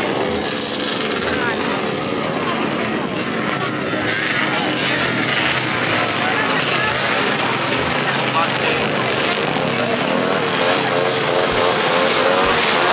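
A crowd of men and women chatter close by outdoors.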